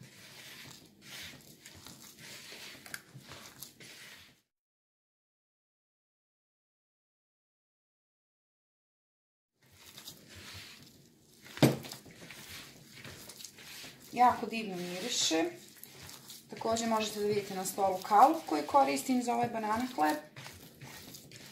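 Hands squish and knead soft dough in a bowl.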